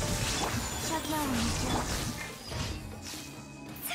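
Magical blasts crackle and boom.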